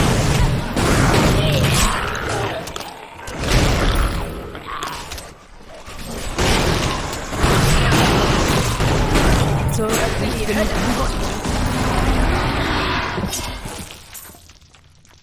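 Game spells crackle and explode in rapid bursts.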